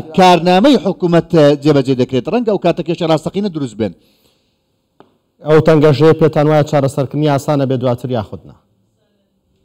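A middle-aged man speaks calmly over a remote microphone link.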